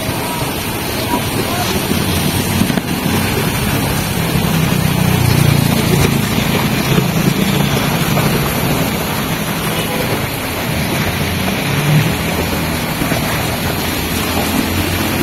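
Tyres hiss on a wet road as cars pass.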